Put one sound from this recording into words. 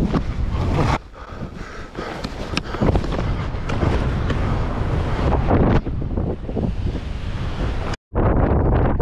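Skis hiss over snow.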